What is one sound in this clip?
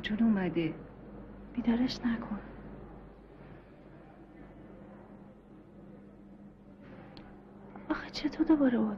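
A woman speaks quietly and earnestly, close by.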